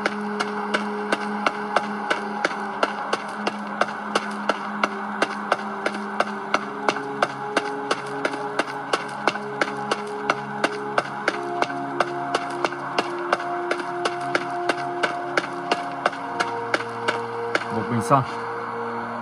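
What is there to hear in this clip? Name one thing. Footsteps crunch at a steady walking pace.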